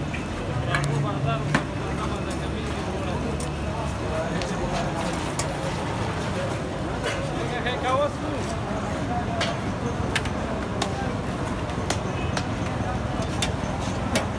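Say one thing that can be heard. Flatbreads sizzle on a hot griddle.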